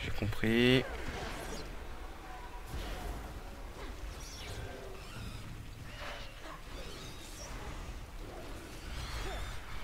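Magic spells whoosh and crackle during a fight.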